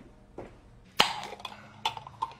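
A jar lid is twisted open with a click.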